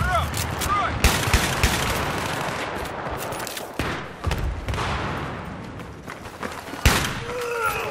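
Gunshots crack and boom with a short echo.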